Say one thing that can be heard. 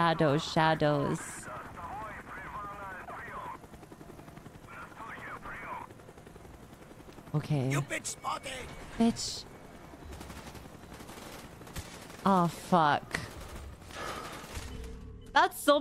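A young woman talks animatedly into a microphone.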